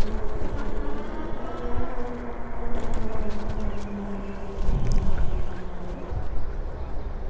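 An electric scooter motor whines as it speeds along.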